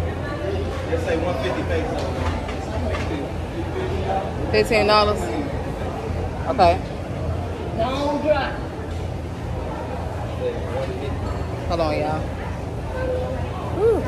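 A young woman speaks close by in a low, casual voice.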